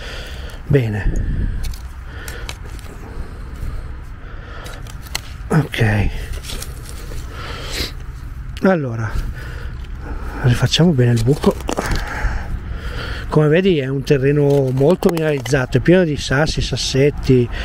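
A small metal trowel scrapes and digs into soil.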